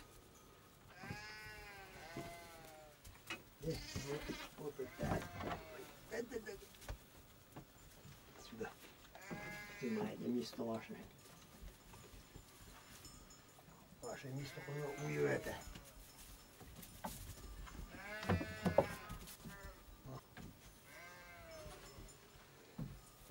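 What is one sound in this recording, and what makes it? Lambs and sheep bleat loudly, close by, over and over.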